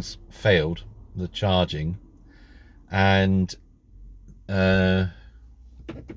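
A man speaks close up with animation, in short bursts.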